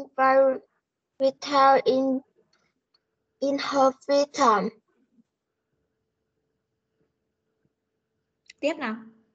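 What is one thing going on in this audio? A woman speaks clearly in short phrases through an online call.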